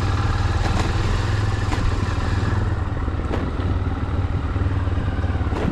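Wind rumbles loudly and steadily across the microphone outdoors.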